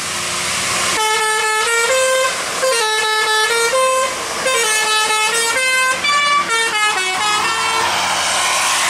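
A bus horn plays a loud, quick musical tune in bursts.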